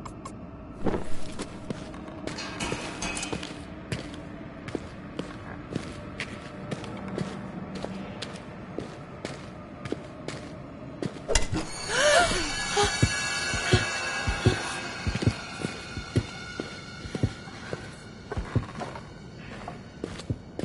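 Footsteps fall steadily on a stone floor.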